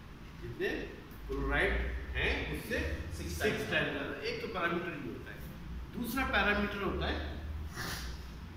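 A middle-aged man speaks calmly in an echoing room.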